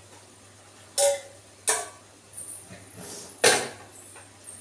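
A metal pan clanks against a pot.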